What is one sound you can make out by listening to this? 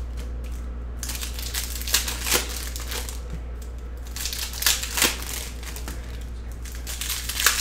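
Trading cards rustle and slap as hands handle them.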